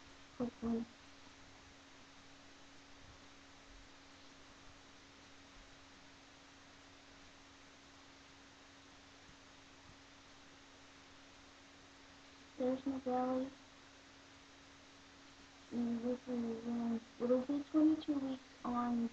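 A woman speaks softly close by, in short bursts.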